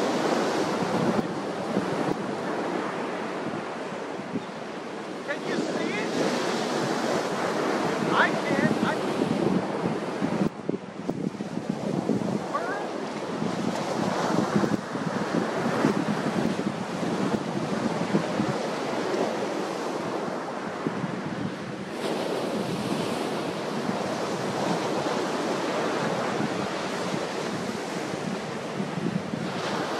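Waves crash and roar onto the shore close by.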